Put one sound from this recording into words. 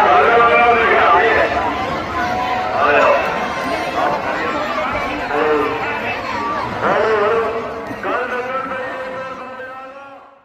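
A large outdoor crowd shouts and cheers loudly.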